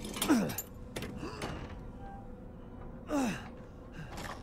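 A wooden gate creaks open.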